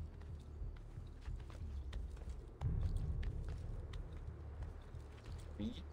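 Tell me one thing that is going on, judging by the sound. A climber's hands grip and scrape on stone ledges in quick taps.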